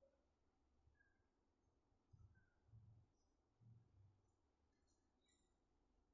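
Hair rustles as it is combed and braided by hand.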